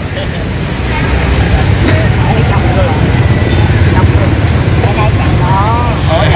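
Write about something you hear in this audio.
Motorbike engines rumble and pass by on a busy street outdoors.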